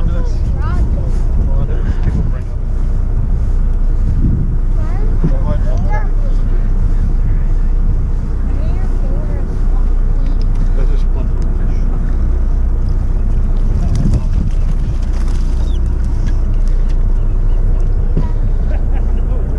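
Wind blows hard across open water outdoors.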